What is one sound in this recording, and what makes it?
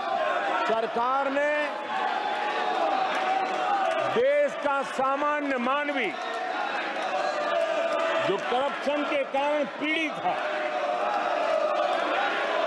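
A crowd shouts and chants in the background.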